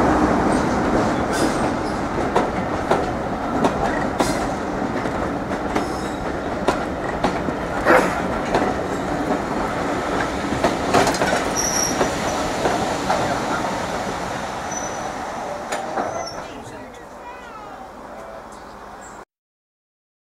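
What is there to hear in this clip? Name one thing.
Railway carriages rumble past on the tracks, with wheels clacking over rail joints.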